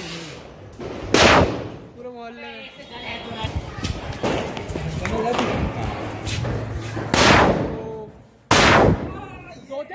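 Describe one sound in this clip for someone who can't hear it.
Firecrackers burst with loud, sharp bangs outdoors.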